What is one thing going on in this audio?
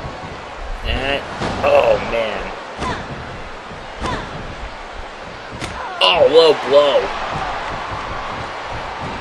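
A crowd cheers and roars steadily.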